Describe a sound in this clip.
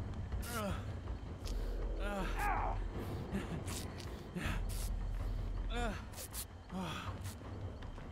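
Metal parts clink and rattle as they are worked on.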